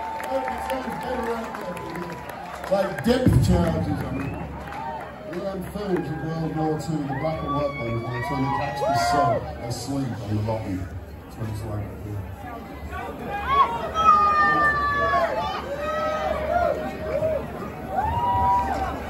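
A band plays loud live music through loudspeakers in a large echoing hall.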